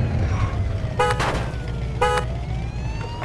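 A car horn honks twice.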